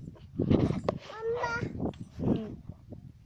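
A small child cries out close by.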